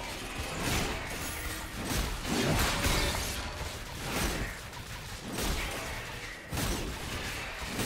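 Game spells whoosh and crackle as characters fight.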